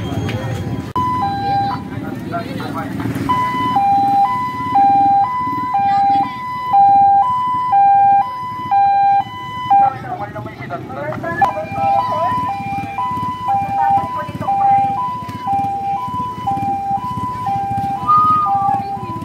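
An ambulance siren sounds a steady two-tone wail nearby.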